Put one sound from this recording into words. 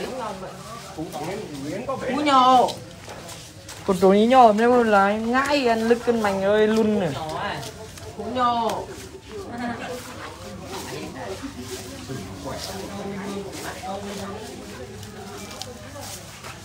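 A buffalo munches and tears at fresh grass up close.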